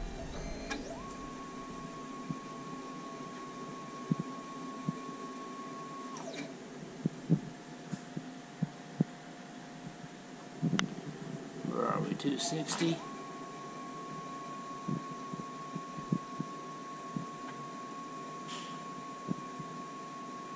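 A machine's motor whines with a steady high tone, stopping and starting again.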